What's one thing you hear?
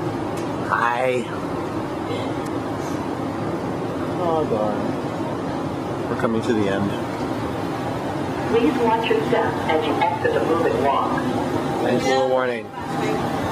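A moving walkway hums and rumbles steadily in an echoing hall.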